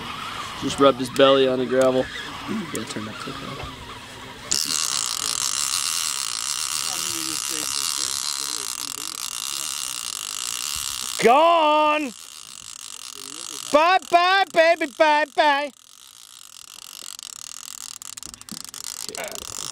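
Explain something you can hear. A fishing reel clicks and whirs as a hand turns it.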